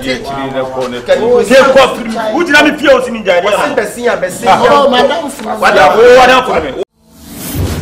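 Several men talk and argue loudly with animation close by.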